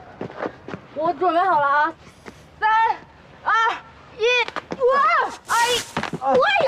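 A young woman speaks loudly and counts with animation, close by.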